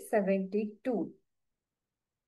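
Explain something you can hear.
A young woman speaks briefly through an online call microphone.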